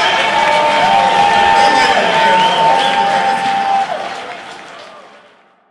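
A band plays loudly with electric guitars and drums, then fades out.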